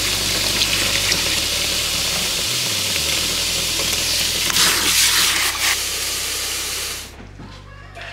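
Tap water gushes into a bucket of foamy water.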